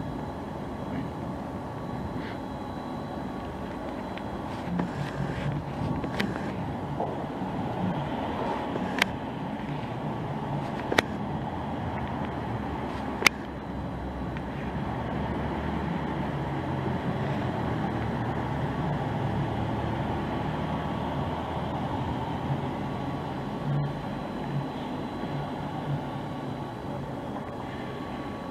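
A fairground tower ride's motor hums low and steady as the cabin rises.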